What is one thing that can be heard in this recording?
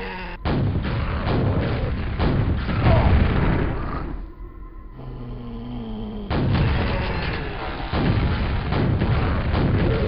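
A gun fires rapid, repeated shots.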